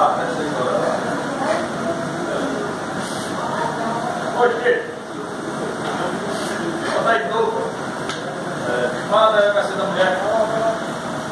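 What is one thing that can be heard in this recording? A man talks nearby in a casual voice.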